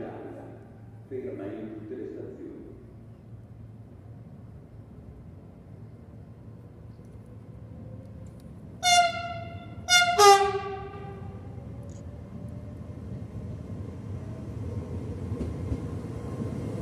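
A train approaches with a low rumble that grows louder.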